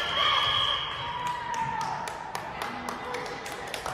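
A volleyball is hit with a sharp smack.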